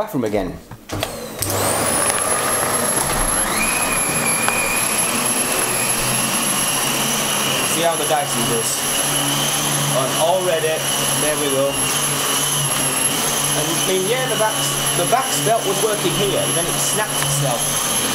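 A vacuum cleaner head brushes and rattles over the floor.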